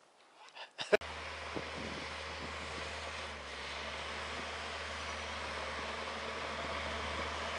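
A heavy machine's engine rumbles steadily in the distance.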